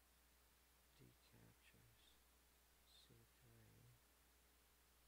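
A man speaks calmly and briefly through a close microphone.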